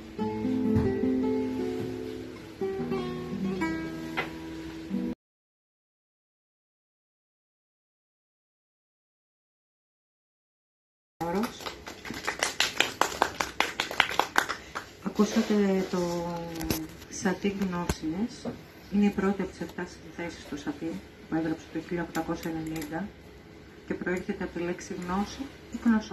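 A man plays a classical guitar.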